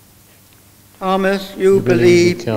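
A man sings.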